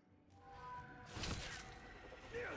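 A blade slashes and strikes.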